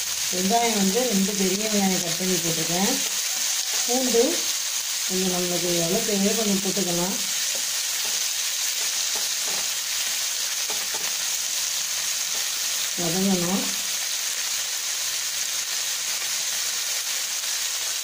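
Onions sizzle as they fry in oil in a pan.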